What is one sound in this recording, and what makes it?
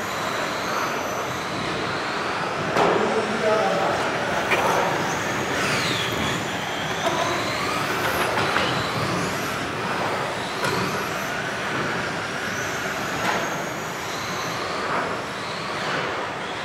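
Small electric motors whine and rise and fall in pitch as toy cars race around.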